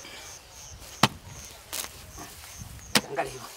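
A hoe strikes and digs into soil with dull thuds.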